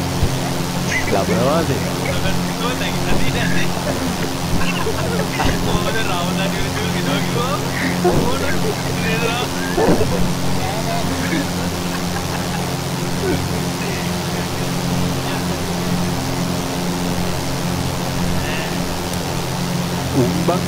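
A light aircraft engine drones steadily.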